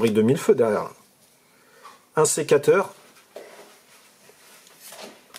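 Trading cards rustle softly as they are shuffled in hand.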